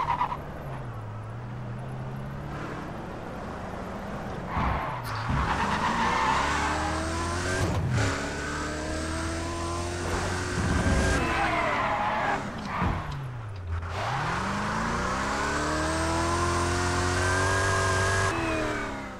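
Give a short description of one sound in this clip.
A sports car engine revs hard, rising and falling as gears shift.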